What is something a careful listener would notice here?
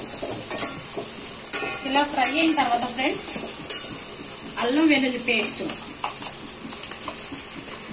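A metal spatula scrapes and clinks against a pot while vegetables are stirred.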